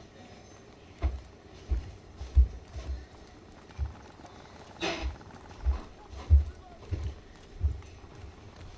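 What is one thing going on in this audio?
Heavy footsteps thud at a steady pace.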